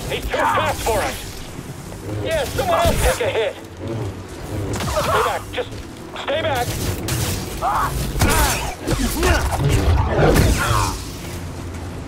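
Lightsabers hum and clash with sharp crackles.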